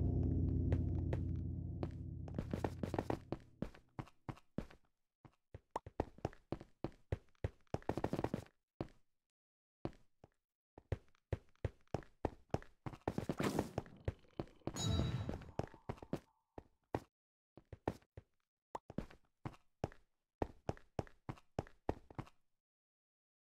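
Game footsteps tap on stone.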